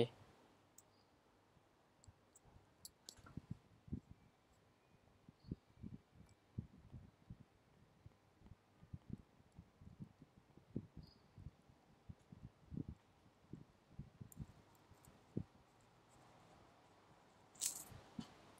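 A stylus taps and scratches lightly on a tablet's glass.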